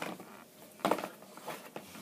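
A cable knocks against a box.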